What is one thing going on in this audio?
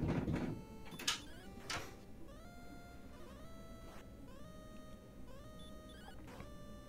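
Chiptune video game music plays steadily with beeping tones.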